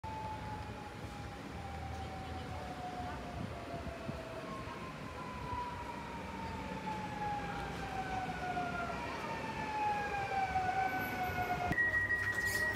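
An electric train's motors whine, slowly falling in pitch as it brakes.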